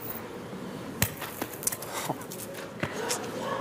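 Metal balls clack sharply against each other.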